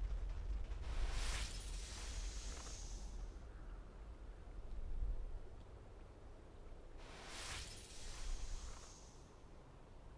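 A sharp magical whoosh bursts out twice, then fades.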